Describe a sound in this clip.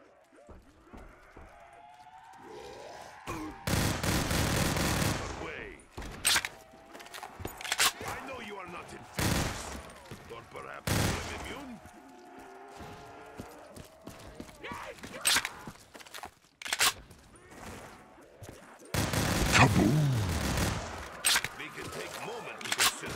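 Zombies groan and snarl close by.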